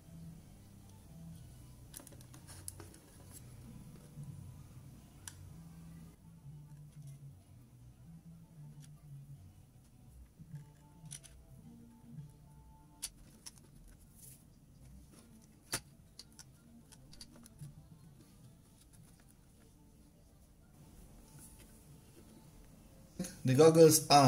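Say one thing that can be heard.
Small plastic parts click and tap as hands handle them.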